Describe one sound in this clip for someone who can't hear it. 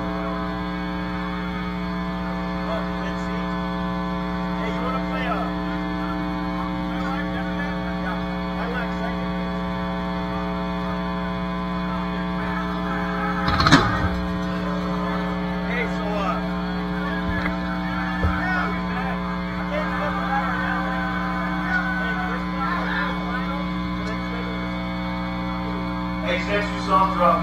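An electric guitar drones steadily through an amplifier.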